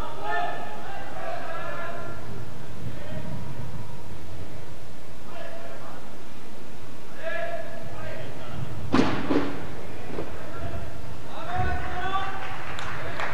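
A man talks nearby in an echoing hall.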